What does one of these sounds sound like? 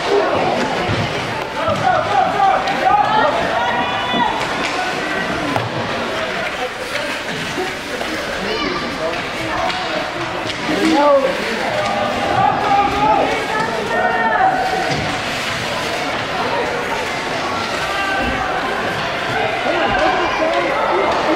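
Children's skates scrape across ice.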